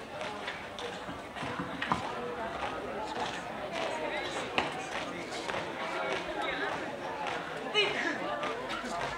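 Boots stamp on hard ground in a marching rhythm.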